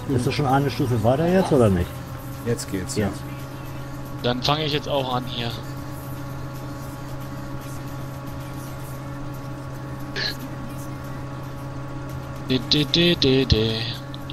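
A combine harvester's engine hums steadily.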